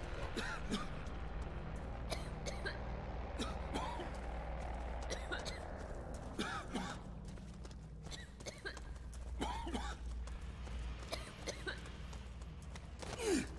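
Heavy boots step steadily on a hard floor.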